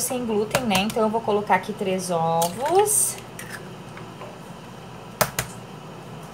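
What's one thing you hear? An eggshell cracks against the rim of a bowl.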